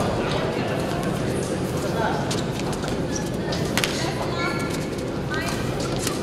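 Rackets hit a shuttlecock back and forth with sharp pops.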